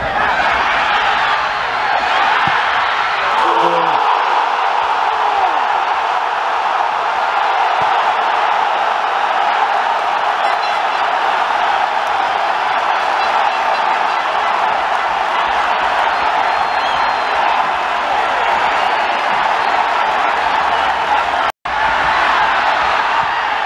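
A large stadium crowd cheers and chants loudly outdoors.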